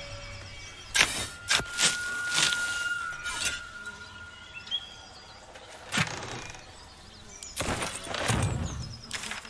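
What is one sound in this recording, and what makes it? A magic spell shimmers and whooshes.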